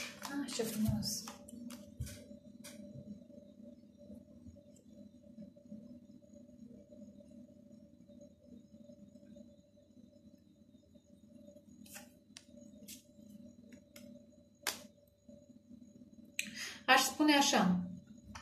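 Playing cards flick and rustle as they are shuffled by hand.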